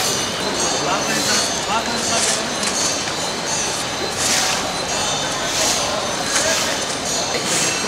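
Water splashes as a man scoops it with his hands.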